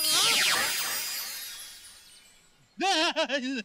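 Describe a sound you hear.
A magical chime shimmers and slowly fades.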